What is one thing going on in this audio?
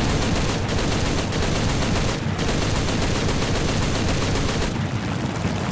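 A plane's machine guns fire in rapid bursts.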